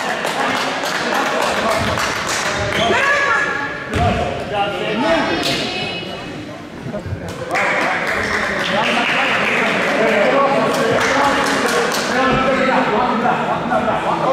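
Basketball shoes squeak sharply on a court in a large echoing gym.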